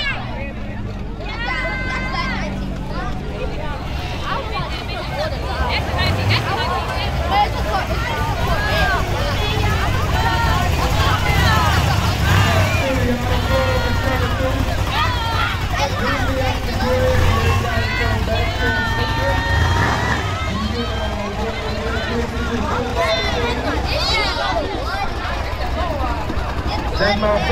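A crowd of spectators outdoors cheers and shouts.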